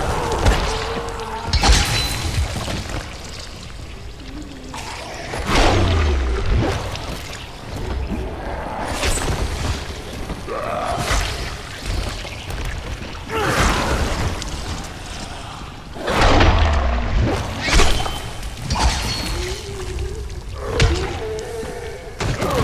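Zombies snarl and groan close by.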